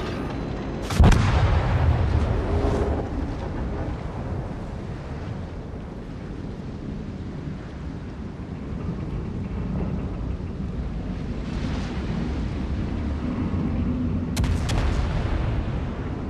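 Heavy explosions boom and roar.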